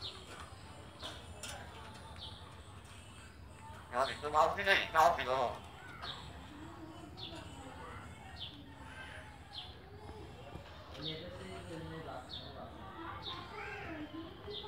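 A bird chirps in short, sharp calls, with one loud burst of squawks.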